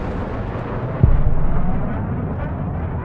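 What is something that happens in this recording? A second explosion booms on the ground.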